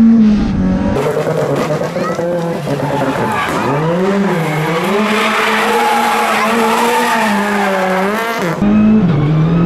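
A rally car engine screams and revs as the car slides around a bend nearby.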